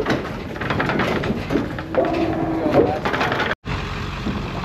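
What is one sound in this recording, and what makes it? Hooves clatter and thump on a metal trailer floor.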